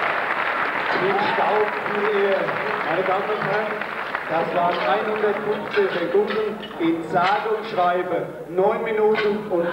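An older man speaks through a loudspeaker, echoing in a large hall.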